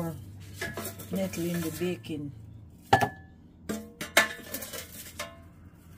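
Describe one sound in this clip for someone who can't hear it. Plastic parts clatter as a blender blade is handled.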